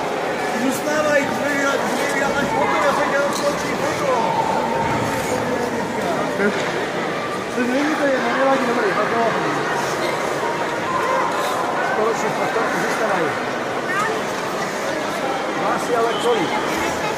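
A crowd of young girls chatters and calls out in a large echoing hall.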